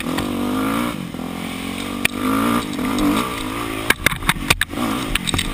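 A dirt bike engine revs up and down close by.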